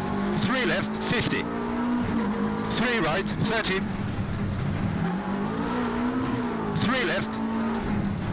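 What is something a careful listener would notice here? A man speaks briefly with animation close to a microphone.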